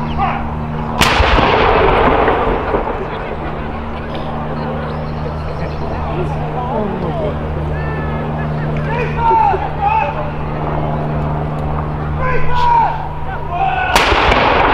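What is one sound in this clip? A cannon fires a loud blast that echoes outdoors.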